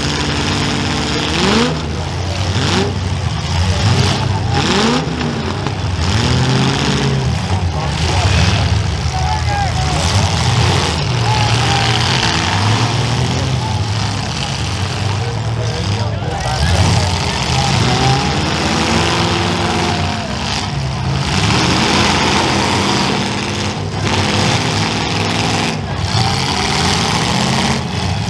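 Steam hisses from a wrecked car's engine.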